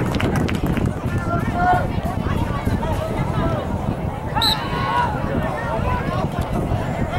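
A crowd of spectators talks and calls out outdoors.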